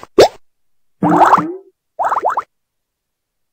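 Game bubbles pop with bright chiming sounds.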